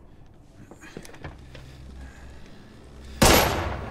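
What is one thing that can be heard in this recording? A door clicks and swings open.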